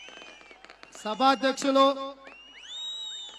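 A man speaks forcefully through a loudspeaker microphone.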